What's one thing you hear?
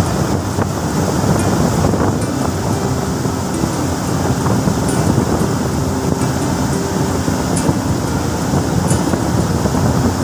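Water rains down steadily and splashes into a shallow pool.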